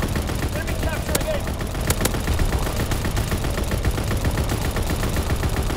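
Machine guns fire in rapid, rattling bursts.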